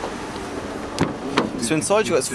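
A car door clicks open.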